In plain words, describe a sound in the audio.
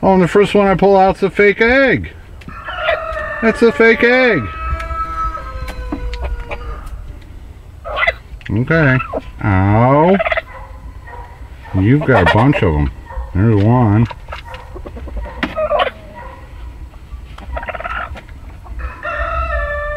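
A broody hen squawks and clucks close by.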